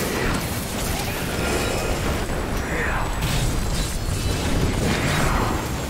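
Fiery explosions boom repeatedly.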